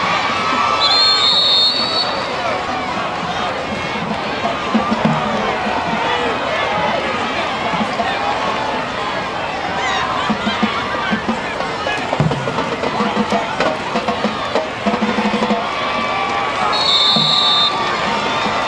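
A referee's whistle blows sharply, twice.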